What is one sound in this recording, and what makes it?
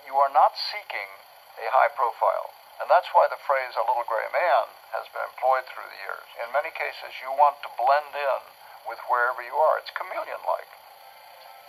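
An older man speaks calmly, heard through a television speaker.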